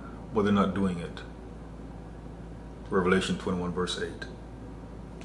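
A man speaks calmly and closely into a microphone, in short phrases.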